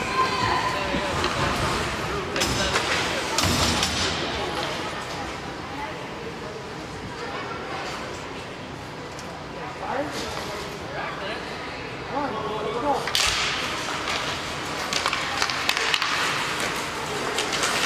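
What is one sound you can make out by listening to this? Spectators murmur and call out in the stands.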